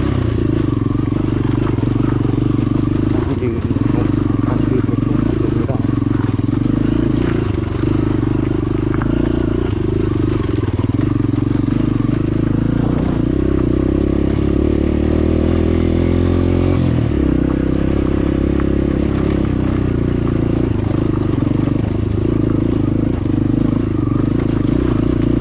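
A dirt bike engine labours as the bike climbs a rocky track.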